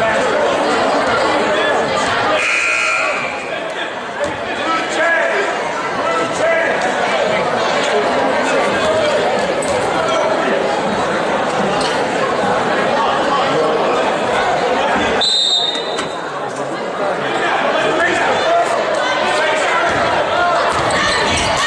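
A crowd chatters and cheers loudly in a large echoing gym.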